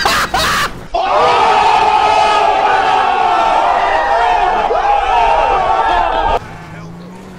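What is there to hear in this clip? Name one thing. A young man shouts loudly outdoors.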